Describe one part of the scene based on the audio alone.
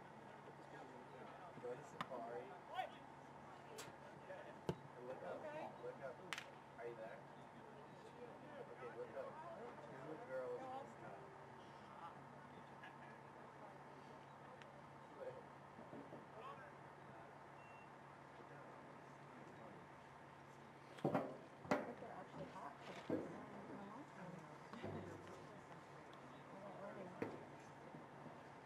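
Players shout and call out to each other across an open field, heard from a distance.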